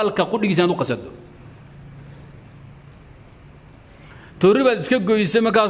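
A man speaks calmly into a close microphone, pausing between phrases.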